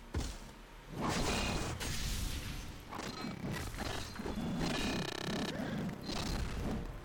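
Game sound effects whoosh and clash in a fight.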